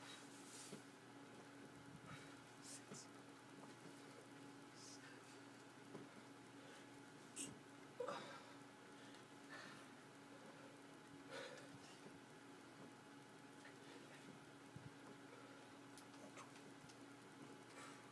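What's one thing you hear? Feet shuffle on a floor during squats.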